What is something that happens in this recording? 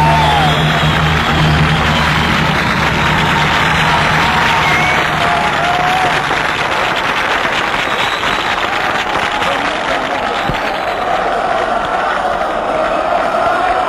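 A large crowd cheers and claps outdoors.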